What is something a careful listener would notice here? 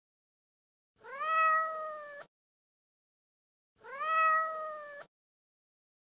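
A cat meows loudly twice.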